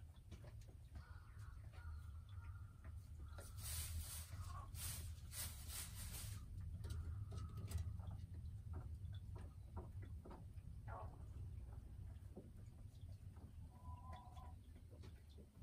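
A hen clucks and croons softly nearby.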